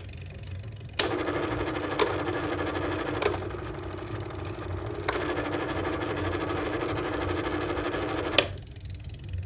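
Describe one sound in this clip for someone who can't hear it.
An electric fan hums and whirs steadily.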